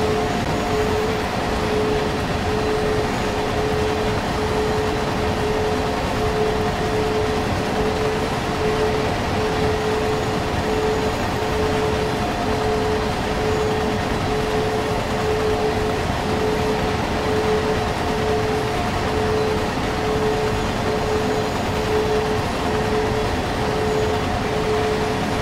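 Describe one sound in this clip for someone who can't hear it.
An electric locomotive motor hums with a steady pulsing whine.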